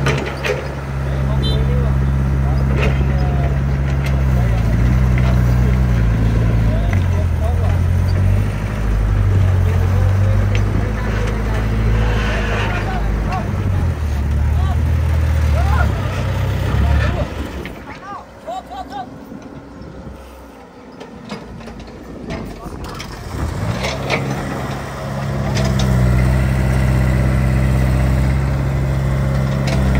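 An excavator engine rumbles loudly nearby, quietening for a while before roaring again.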